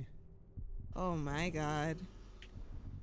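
A man sings out a long, drawn-out note into a close microphone.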